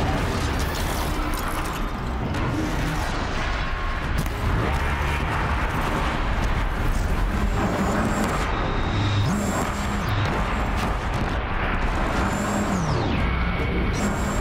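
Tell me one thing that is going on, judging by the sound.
A large machine roars and stomps.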